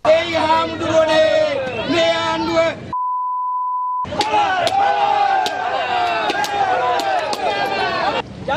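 A crowd of men shouts and chants loudly outdoors.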